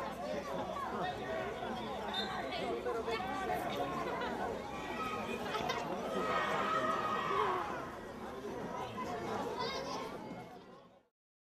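A group of children chant and shout together outdoors.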